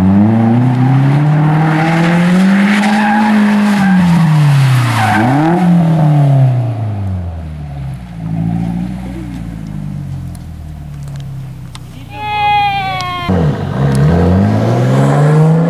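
A car engine revs hard, rising and falling repeatedly.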